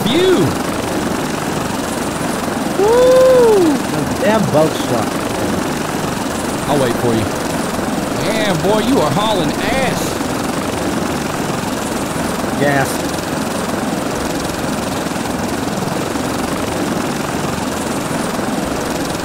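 Waves wash and roll steadily, with wind over open water.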